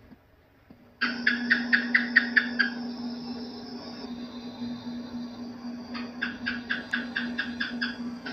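A gecko chirps in quick runs of sharp clicks.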